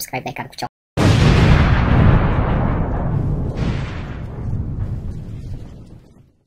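A huge explosion booms and rumbles, slowly fading.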